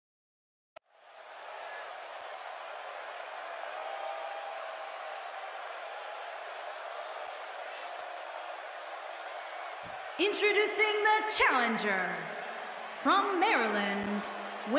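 A large crowd cheers steadily in a big echoing hall.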